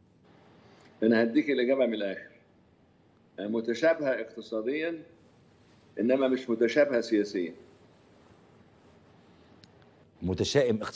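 An elderly man speaks calmly in short phrases with pauses, heard through a microphone.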